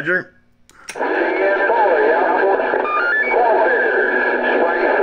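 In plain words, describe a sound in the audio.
A radio hisses with loud static.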